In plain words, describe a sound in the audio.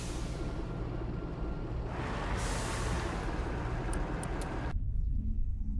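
A heavy vehicle engine rumbles.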